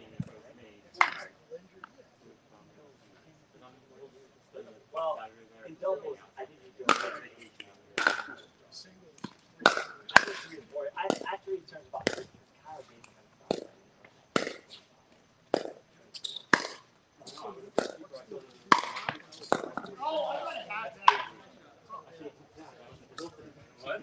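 Paddles strike a plastic ball with sharp pops outdoors.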